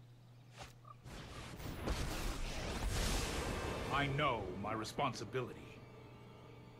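A loud magical whoosh swells and fades.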